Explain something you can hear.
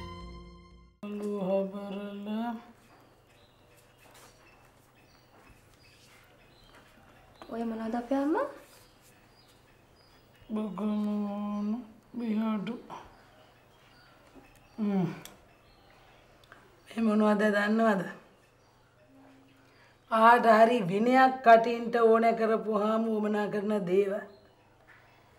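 A young woman answers softly, close by.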